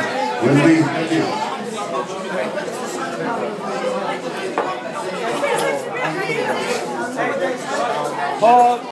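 A crowd of men and women talk and cheer loudly all around in an echoing room.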